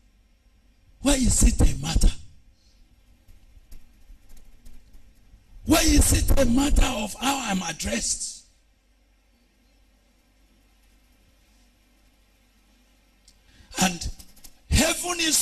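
A man preaches loudly and with passion into a microphone, in bursts with pauses.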